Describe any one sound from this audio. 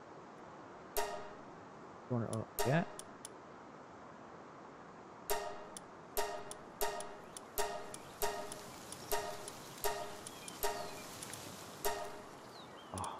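Short chimes ring as menu choices are confirmed.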